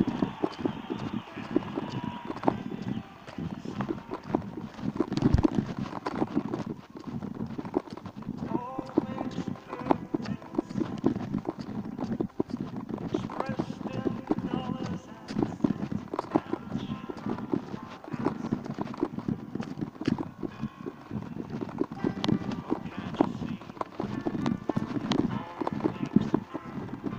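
Wheels rumble steadily over an asphalt road.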